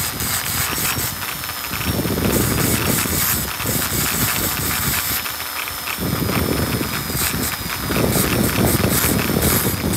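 A small rotary tool whines at high speed while grinding a small metal part.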